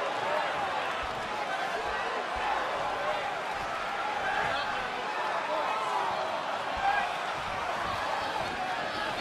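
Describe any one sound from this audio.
A large crowd cheers and chants loudly.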